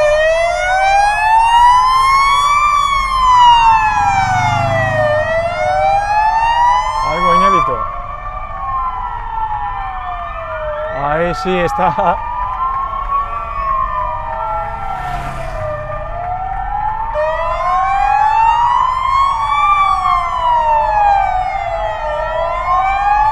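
A siren wails loudly nearby, rising and falling steadily.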